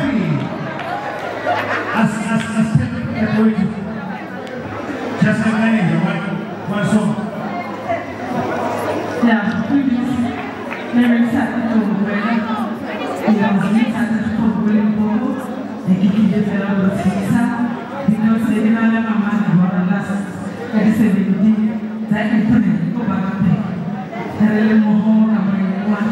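An electric bass guitar plays a steady low line.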